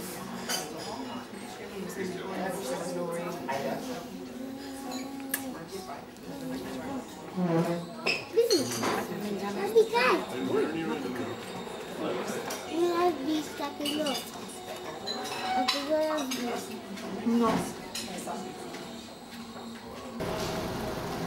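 A woman talks calmly and playfully up close.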